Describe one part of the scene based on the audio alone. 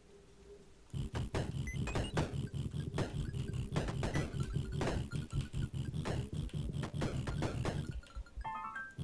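Rapid video game gunfire pops and crackles.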